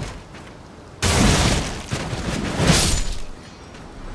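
Metal weapons clash and strike with sharp impacts.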